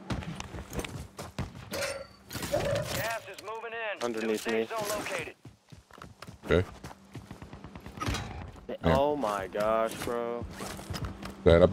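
Footsteps run quickly over dirt and gravel.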